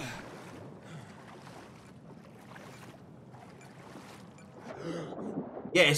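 Water splashes softly as a swimmer paddles.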